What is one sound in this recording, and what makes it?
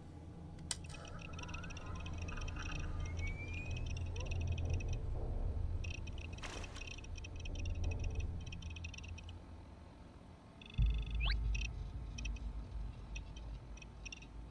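An electronic device chirps and beeps as it starts up.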